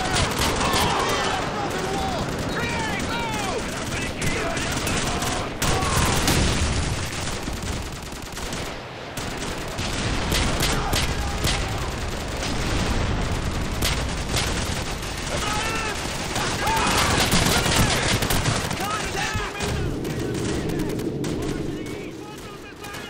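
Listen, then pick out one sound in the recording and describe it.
Gunshots crack rapidly in bursts, with loud echoing reports.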